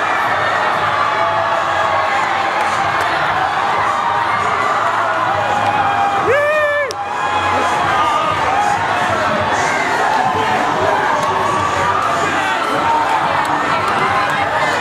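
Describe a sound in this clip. A large crowd of young people cheers and shouts loudly in an echoing hall.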